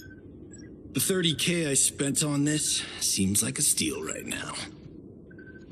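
A young man speaks with cheerful wonder, close by.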